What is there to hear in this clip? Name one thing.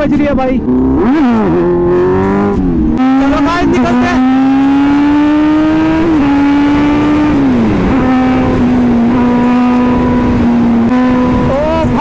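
A motorcycle engine roars loudly close by, revving up and down as it shifts gears.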